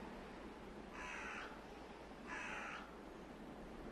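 Birds call overhead in short bursts.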